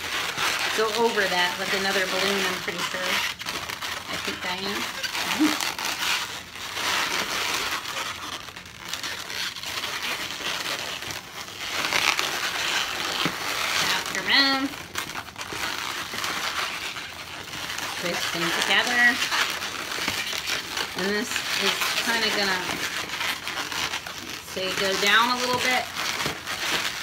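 Rubber balloons squeak loudly as they are twisted.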